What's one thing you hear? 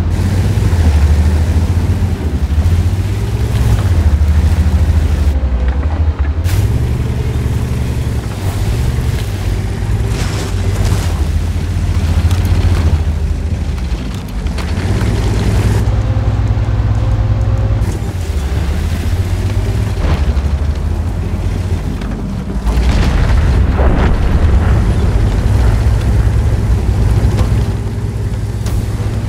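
Tank tracks clank and rattle over rough ground.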